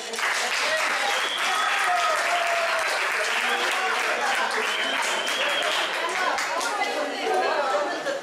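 A group of people clap and cheer loudly in a room.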